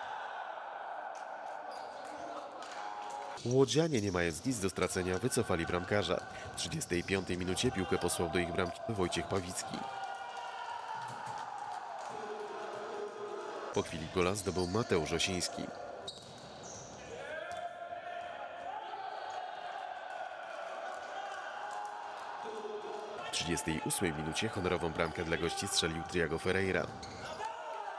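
A ball is kicked hard in a large echoing hall.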